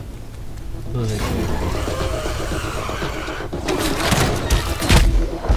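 A large insect monster roars and buzzes loudly.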